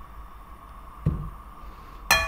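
A bowl knocks lightly against a table.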